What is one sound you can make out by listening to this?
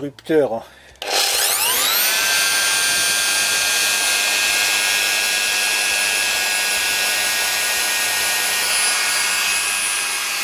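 An electric router motor starts up and runs at a steady high whine.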